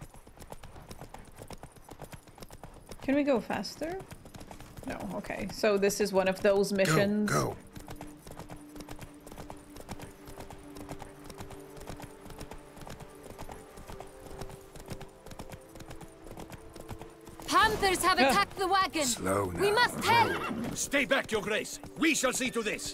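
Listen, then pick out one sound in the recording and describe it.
Horse hooves clop on a dirt road.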